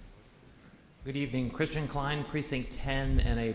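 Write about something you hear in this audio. A man speaks through a microphone in a large, echoing hall.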